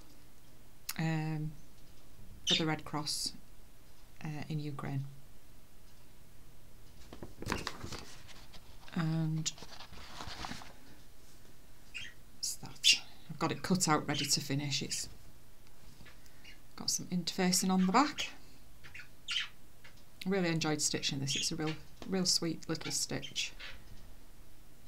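A middle-aged woman talks calmly and close to a microphone, in short phrases with pauses.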